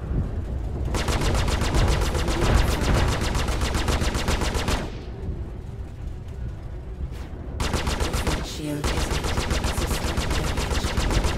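Laser cannons fire in rapid, rattling bursts.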